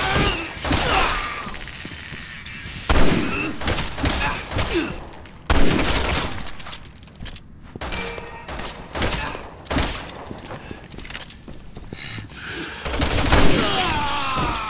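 Loud rifle shots ring out, each followed by a short echo.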